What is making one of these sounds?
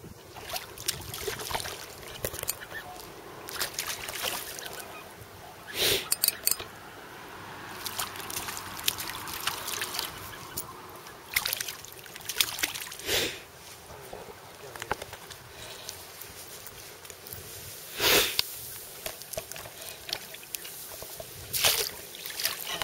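A hooked fish splashes and thrashes at the water's surface.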